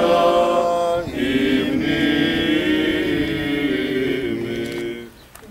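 An elderly man chants a slow, sustained prayer outdoors.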